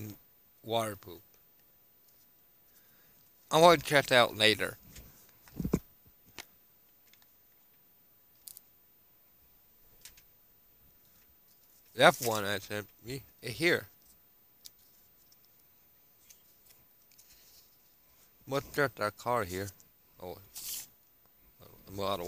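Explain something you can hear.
A young man speaks calmly into a headset microphone, in short bursts with pauses.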